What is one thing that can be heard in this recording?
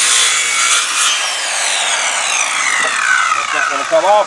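A circular saw spins down after the cut.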